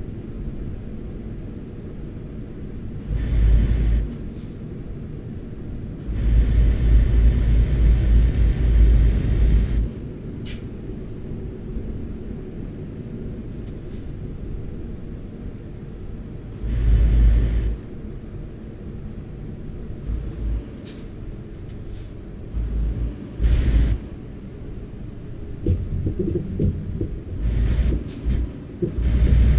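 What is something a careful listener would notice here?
A truck engine hums steadily as it drives.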